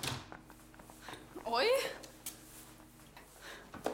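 A young woman speaks cheerfully nearby.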